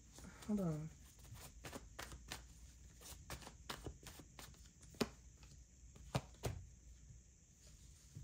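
Cards slap and shuffle onto a table.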